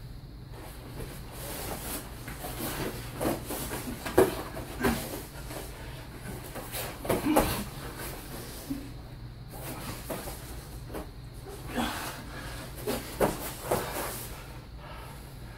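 Two men grapple and thump on a padded floor mat.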